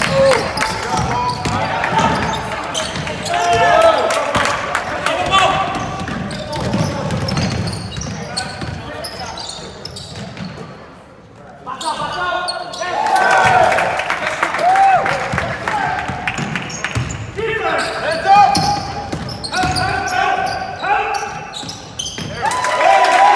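Spectators call out and cheer in an echoing gym.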